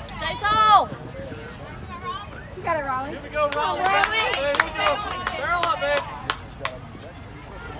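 Young women shout and cheer from across a field.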